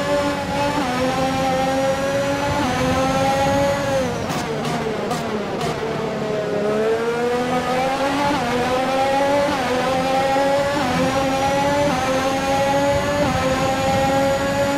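A racing car engine screams at high revs, dropping as it brakes and rising again through the gears.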